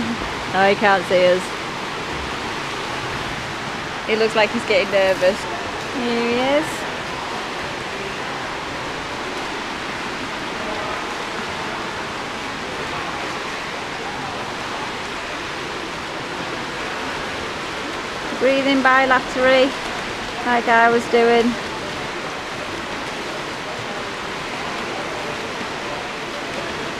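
Swimmers splash in an echoing indoor pool.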